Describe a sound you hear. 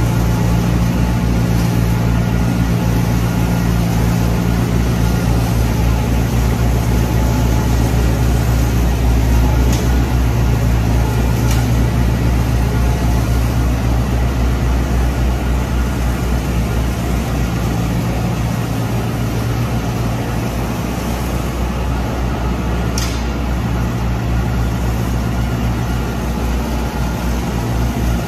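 A tractor engine hums steadily close by.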